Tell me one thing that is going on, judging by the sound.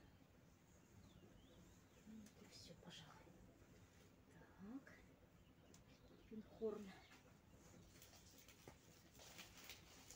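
Leaves rustle softly as plants are handled close by.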